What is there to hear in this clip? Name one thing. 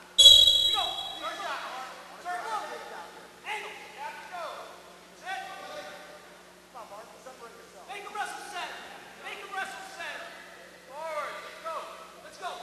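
Wrestling shoes squeak on a mat.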